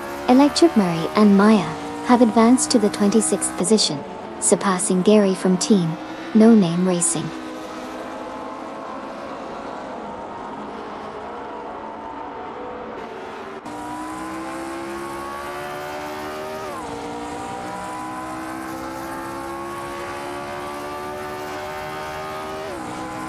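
A racing car engine whines at high revs and shifts gears.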